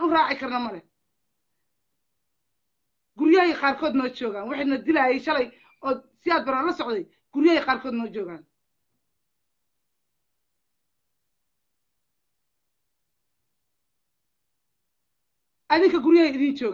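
A middle-aged woman speaks passionately and loudly, close by, with long pauses.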